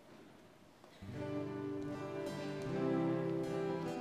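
Women sing loudly in a large echoing hall.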